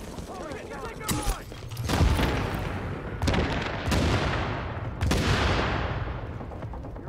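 Gunshots and blasts crack and boom in loud bursts.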